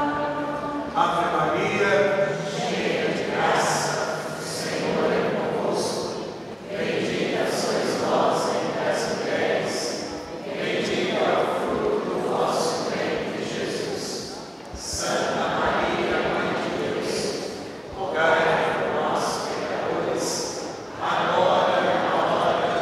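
A large crowd sings together in a large echoing hall.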